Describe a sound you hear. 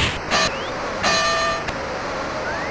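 A boxing bell rings.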